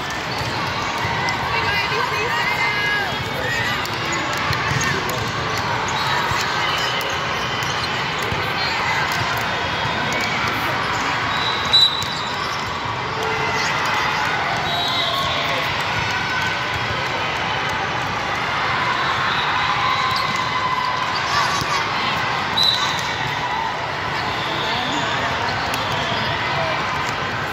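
Many voices chatter steadily in a large echoing hall.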